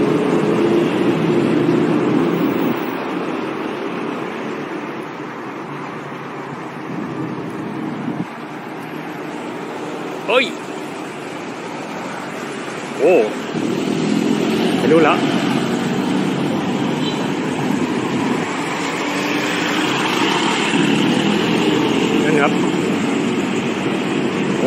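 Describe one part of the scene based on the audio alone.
City traffic hums outdoors on a street.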